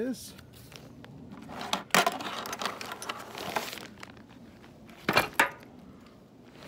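A zippered fabric case rustles as a hand rummages inside it.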